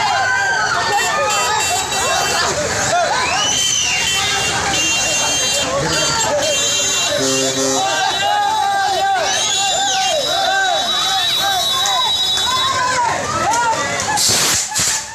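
A crowd of men shout and yell angrily nearby.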